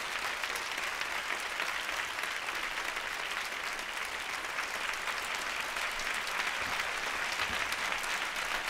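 A large audience applauds steadily in a big hall.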